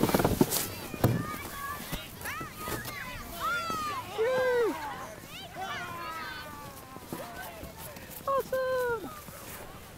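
Children shout and call out in the distance outdoors.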